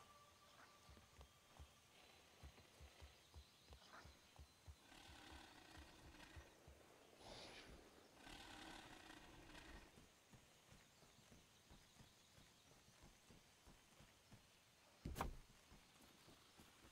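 Footsteps thud softly in a quick rhythm.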